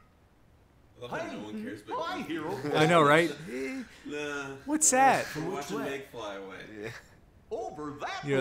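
Young men laugh loudly into microphones.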